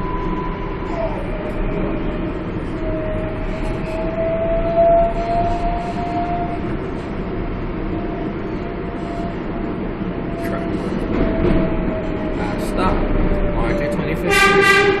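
Train wheels screech on the rails with a high, wavering whine.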